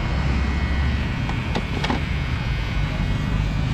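Electric hair clippers buzz while trimming hair.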